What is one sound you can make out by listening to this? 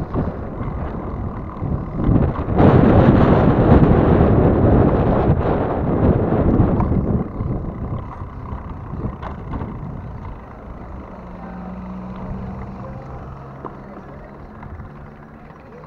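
Bicycle tyres roll on asphalt.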